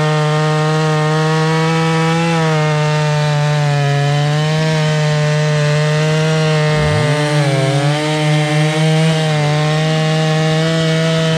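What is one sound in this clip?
A chainsaw cuts through a log.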